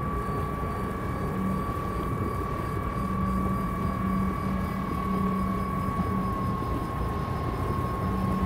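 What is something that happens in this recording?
A mining laser hums steadily.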